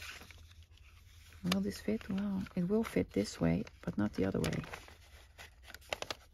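A paper punch clicks and snaps shut.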